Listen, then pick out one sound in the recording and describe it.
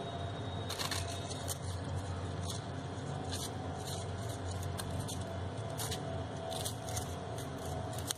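Paper rustles and crinkles as hands bend paper flowers.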